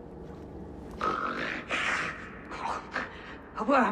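A man speaks in a low, grave voice.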